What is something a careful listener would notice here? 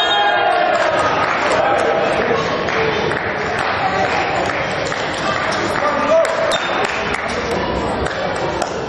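Young men shout and cheer together in a huddle in an echoing sports hall.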